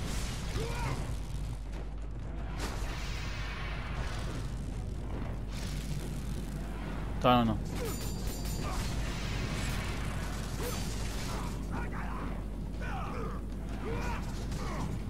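Monsters grunt and snarl.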